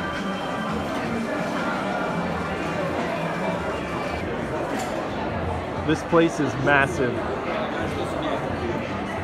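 A crowd of people chatters in a large echoing room.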